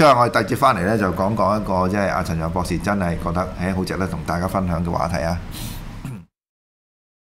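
A middle-aged man speaks calmly and steadily into a microphone, close by.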